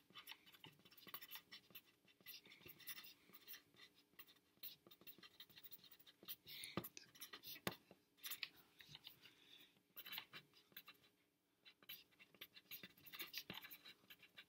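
A pencil scratches and taps on paper close by.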